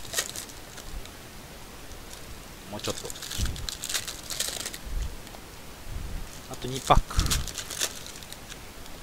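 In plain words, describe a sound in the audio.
Card packs rustle and tear open.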